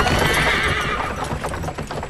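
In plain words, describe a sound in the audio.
A wagon rumbles along a dirt track.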